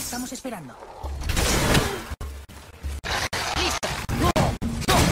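Heavy blows thud and crash in a fight.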